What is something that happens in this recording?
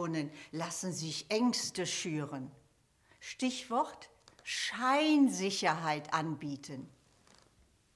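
A middle-aged woman speaks with animation.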